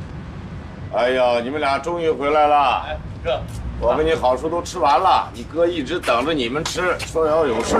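An elderly man speaks warmly nearby.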